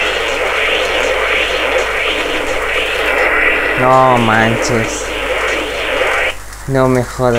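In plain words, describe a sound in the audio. A loud blast of electronic game noise roars steadily.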